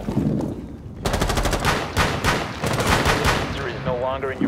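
A pistol fires a rapid burst of shots.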